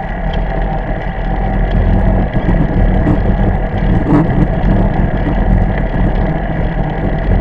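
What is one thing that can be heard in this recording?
Wind rumbles loudly against the microphone of a moving bicycle.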